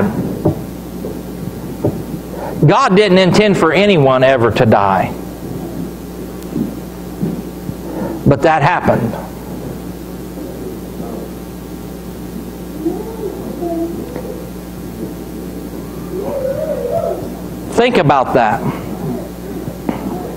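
A middle-aged man speaks calmly into a microphone in a room with some echo, with pauses between phrases.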